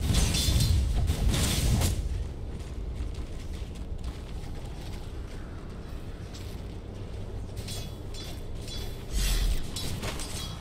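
Game combat sound effects clash and burst in quick succession.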